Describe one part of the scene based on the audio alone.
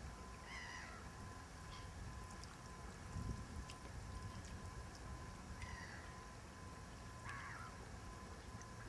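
Gulls call over water.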